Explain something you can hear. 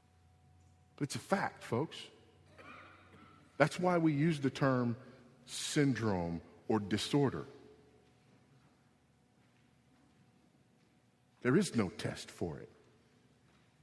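A man speaks forcefully in short bursts through a microphone.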